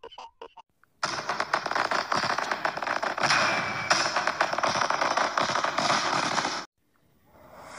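Fireworks crackle and pop.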